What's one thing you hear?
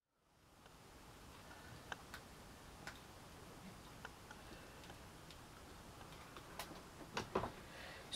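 A hot glue gun clicks faintly as glue is pressed out.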